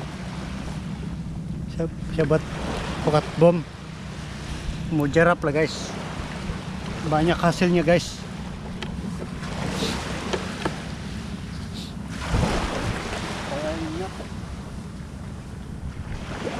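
Small waves lap gently on a shore.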